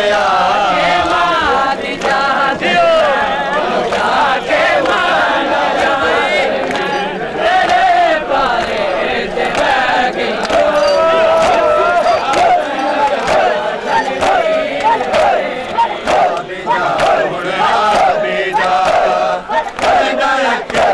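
Men beat their bare chests with their hands in rhythm.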